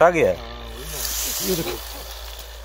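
Leafy branches rustle close by.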